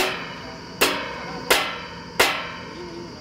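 Metal clanks sharply as pipes are handled.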